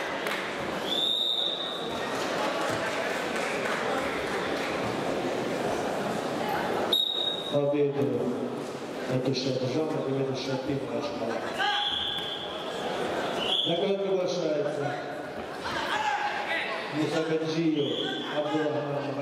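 A referee blows short, sharp whistle blasts several times.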